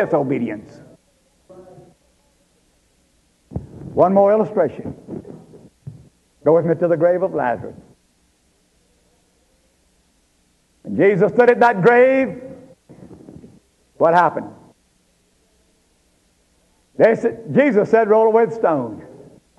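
An elderly man speaks calmly, in bursts with pauses.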